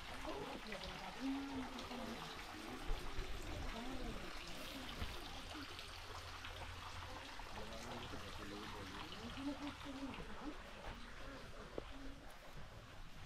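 A few adults talk at a distance outdoors.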